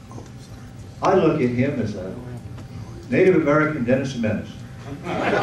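An older man speaks calmly through a microphone.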